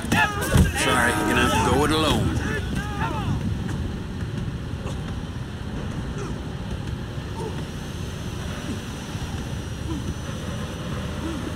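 Footsteps walk on hard ground.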